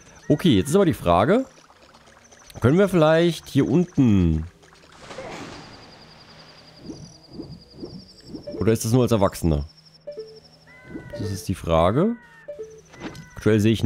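Water splashes as a figure wades and swims.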